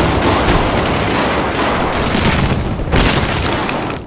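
A loud explosion roars.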